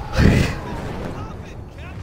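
A young man shouts desperately.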